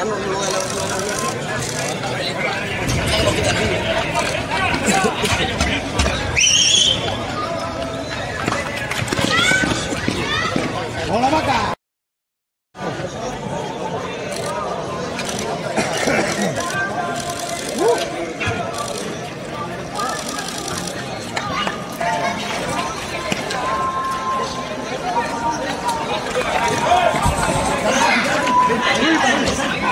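A crowd of young men shouts and calls out excitedly outdoors.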